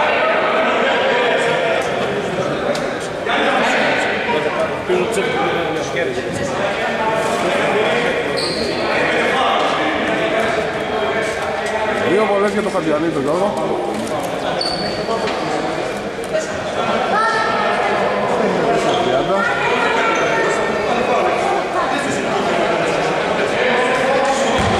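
Men and women talk and call out in a large echoing hall.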